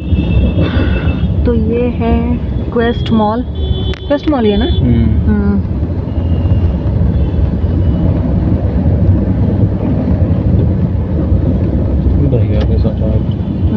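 Traffic rumbles steadily along a busy road, heard from inside a moving vehicle.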